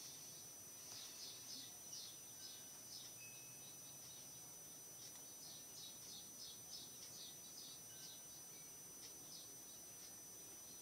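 A computer mouse clicks softly, over and over.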